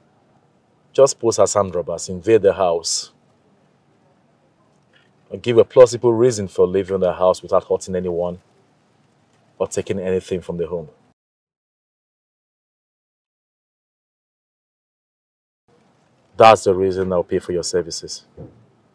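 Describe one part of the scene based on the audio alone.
A man speaks firmly and close by, with pauses between his words.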